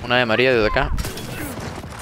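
A rifle fires a burst of shots.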